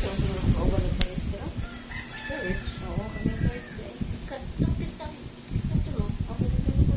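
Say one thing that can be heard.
Small metal nippers click and scrape against a toenail.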